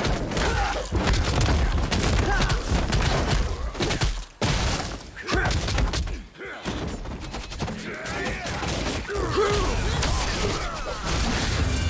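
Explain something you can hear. A man talks into a microphone with animation.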